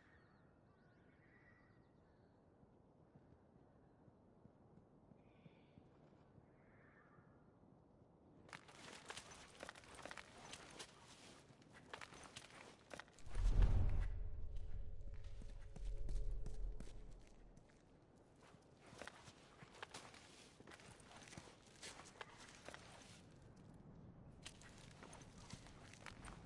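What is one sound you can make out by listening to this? Clothing rustles softly as a person crawls along the floor.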